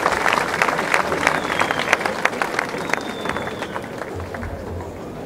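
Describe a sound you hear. A large crowd claps outdoors, then the applause dies down.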